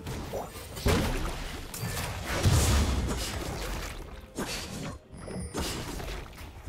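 Video game spell effects whoosh and burst in quick succession.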